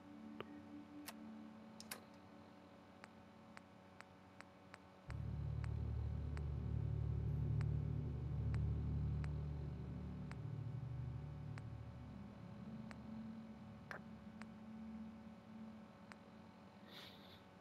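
Soft electronic clicks tick one after another as a menu is scrolled.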